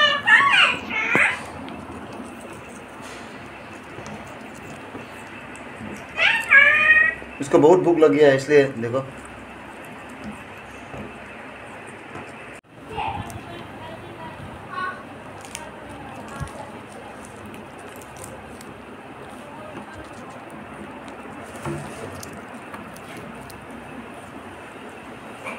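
Parakeets' beaks crunch and tear at pea pods with small snapping clicks.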